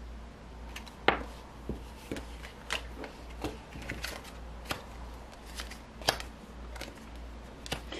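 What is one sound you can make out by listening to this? Cards tap and slide softly on a table.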